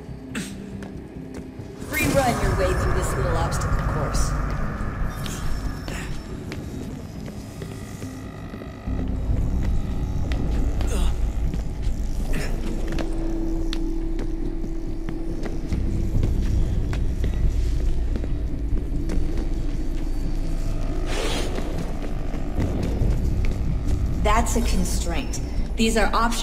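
Quick footsteps patter as a runner sprints and leaps.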